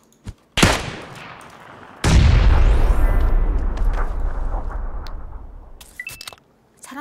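Gunshots ring out and echo.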